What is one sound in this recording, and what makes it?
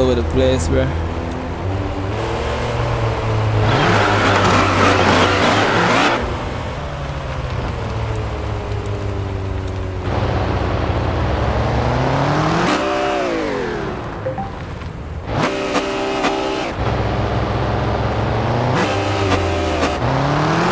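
A truck engine rumbles and revs up and down.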